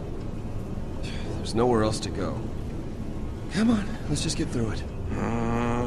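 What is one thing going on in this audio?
A young man speaks urgently, close by.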